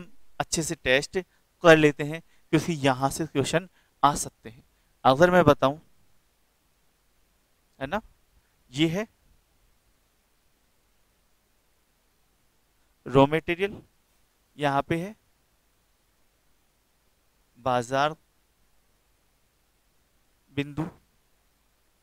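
A young man speaks with animation into a headset microphone, in short bursts.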